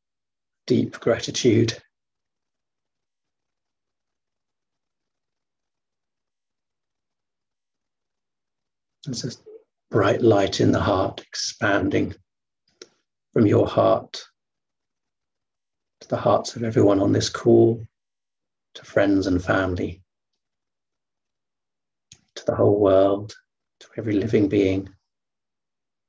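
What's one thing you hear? A man speaks calmly and slowly over an online call, with long pauses.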